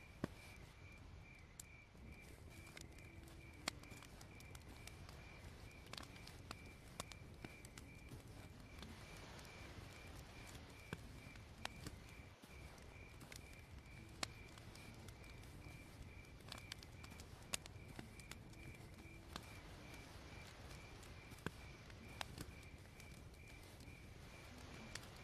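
A fire crackles and pops steadily.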